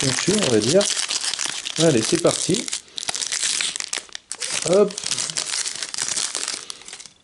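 A foil wrapper crinkles and rustles as it is torn open.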